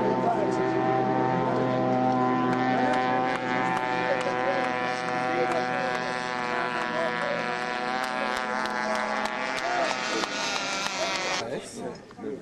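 A racing powerboat engine roars steadily across the water.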